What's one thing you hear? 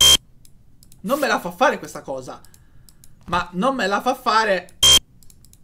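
A young man speaks close to a microphone in a relaxed tone.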